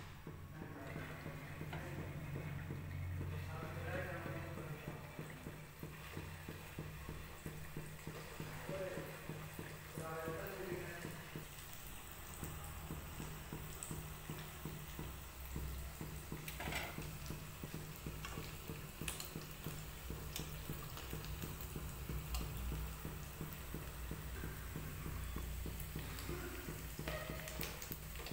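Oil sizzles and crackles steadily in a hot pan.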